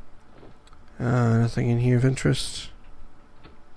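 A man speaks loudly and drawn out into a close microphone.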